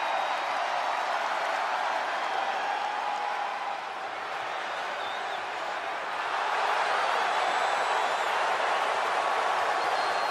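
A large arena crowd cheers and roars steadily.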